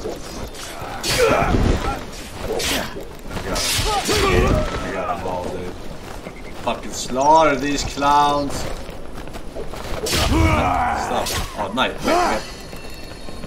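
A young man talks animatedly into a microphone, heard close.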